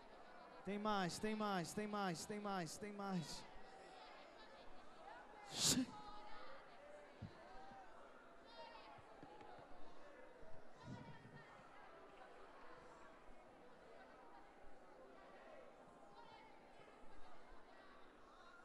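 A crowd of young people shouts and chatters throughout.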